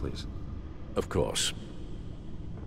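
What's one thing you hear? An elderly man replies briefly and politely.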